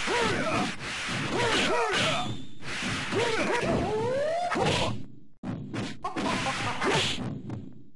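Fighting game characters clash with sharp hits and swooshes.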